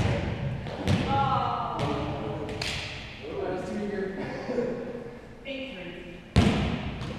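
Players call out to each other across a large hall.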